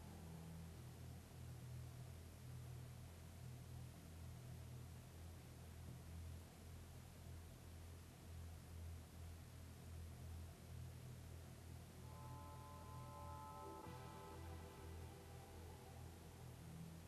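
A car engine rumbles low and steady as the car drives slowly.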